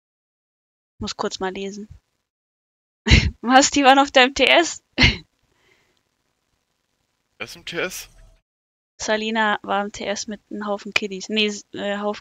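A young woman speaks with animation close to a microphone.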